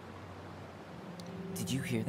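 A young man speaks calmly.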